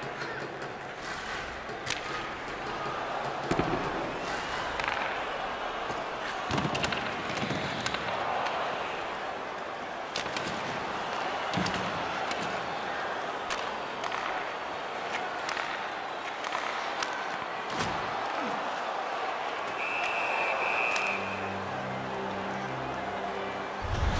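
Sticks and a puck clack sharply now and then.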